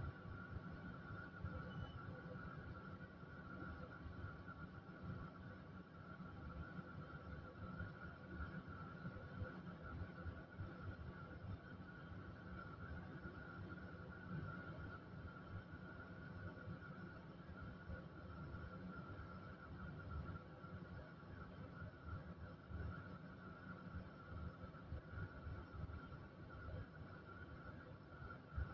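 A tram's motor hums steadily with a low rumble.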